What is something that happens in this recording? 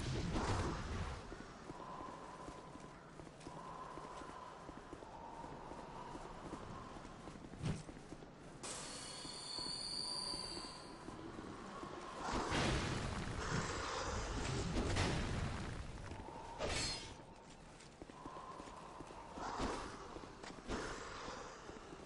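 Swords clash and clang against a shield.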